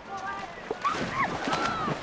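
A boy dives into water with a splash.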